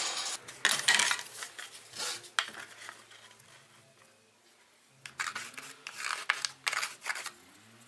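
A pencil scratches on plastic.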